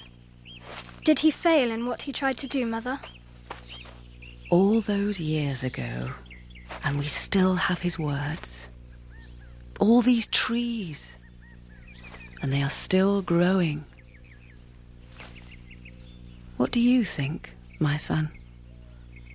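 A young boy speaks with animation.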